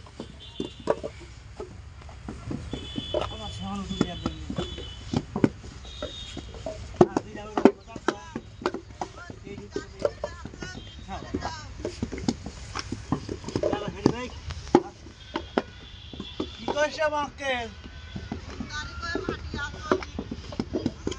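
Wet clay slaps and thuds into wooden moulds.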